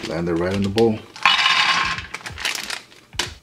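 Nuts pour and rattle into a metal pan.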